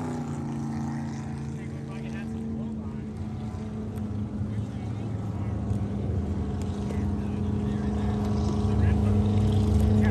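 Boat engines hum in the distance.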